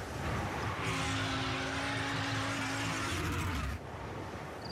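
Tyres screech loudly as a car drifts.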